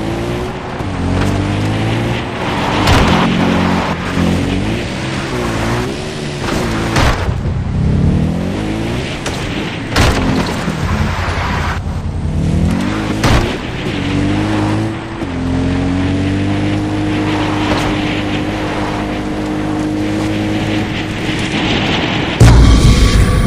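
A quad bike engine revs and changes pitch as it drives over rough ground.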